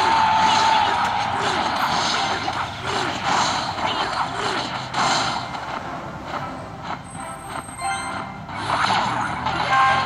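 Video game battle sound effects clash and crackle.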